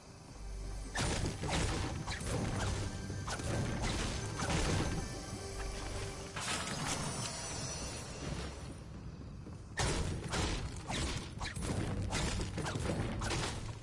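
A pickaxe strikes a wall with sharp knocks.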